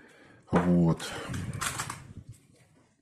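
Sticky tape peels off a roll with a crackling rasp.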